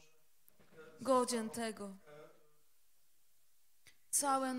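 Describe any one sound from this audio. A woman sings loudly into a microphone.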